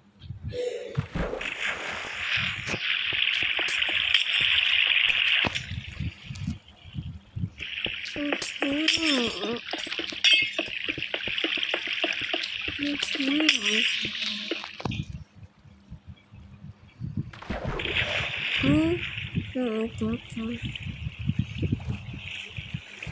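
Water rushes and splashes.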